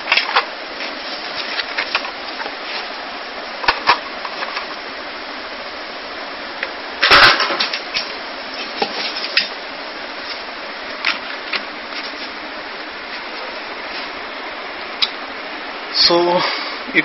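Plastic packaging crinkles and taps as a hand handles it.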